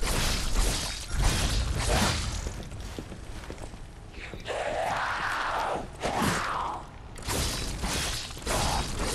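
Flames burst with a roaring whoosh.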